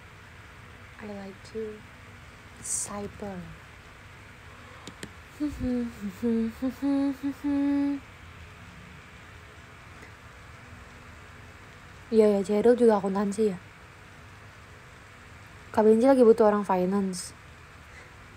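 A young woman speaks close by in short bursts.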